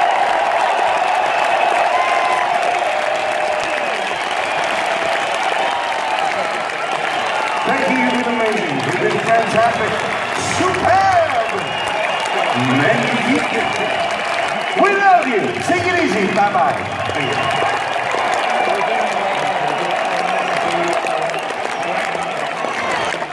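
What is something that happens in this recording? A rock band plays loudly through big speakers in a large echoing arena.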